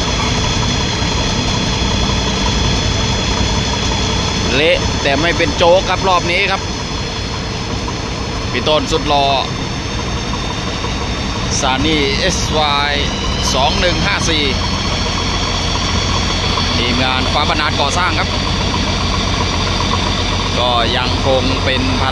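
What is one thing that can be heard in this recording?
An excavator's diesel engine rumbles steadily nearby.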